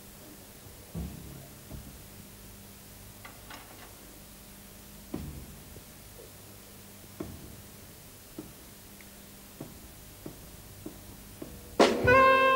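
A drum kit is struck softly now and then.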